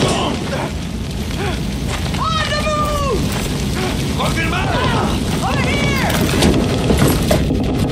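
Fire crackles and roars nearby.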